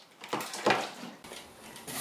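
Liquid sloshes as a hand dips into it.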